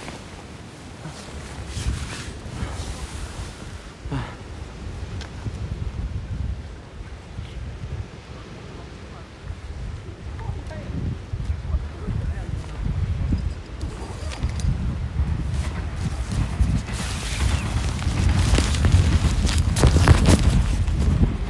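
Jacket fabric rubs and rustles against the microphone.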